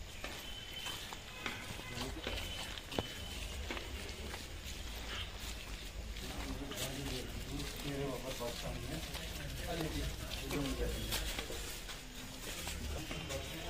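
Footsteps shuffle on a hard floor as several people walk.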